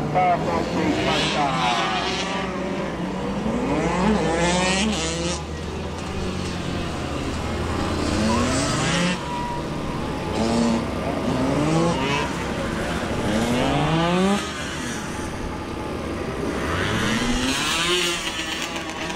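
A small motorcycle engine revs up and down repeatedly.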